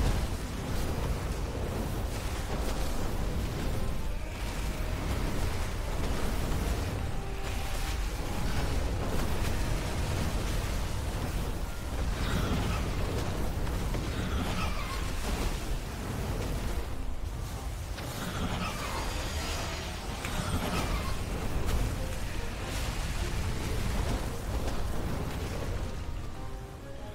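Game spell effects whoosh and crackle steadily.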